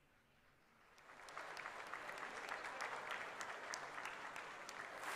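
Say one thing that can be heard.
A group of people applauds in a hall.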